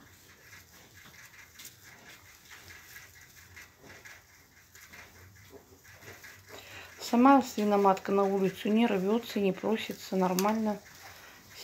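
Straw rustles as piglets shuffle about.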